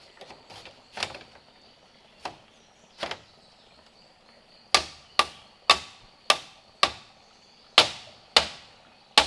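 Hammer blows knock sharply on wood.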